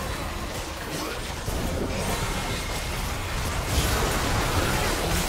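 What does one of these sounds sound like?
Game spell effects whoosh and crackle during a battle.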